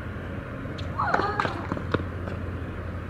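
A racket strikes a tennis ball with a sharp pop.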